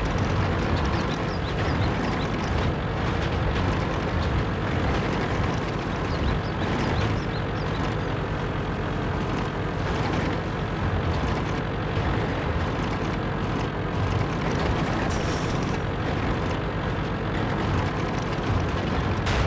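A tank engine rumbles steadily as the tank drives over grass.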